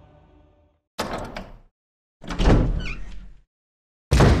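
A heavy wooden door creaks open slowly.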